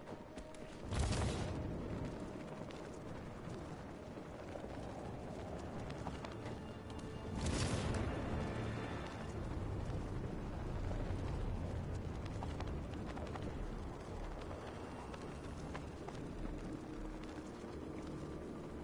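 Wind rushes past steadily during a long glide.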